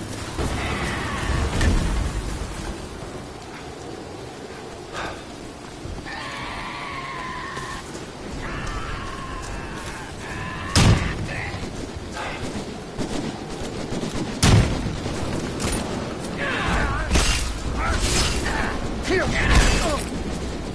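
Footsteps crunch over leaves and undergrowth.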